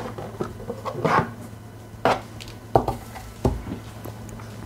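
Plastic parts clatter as they are set down on a table.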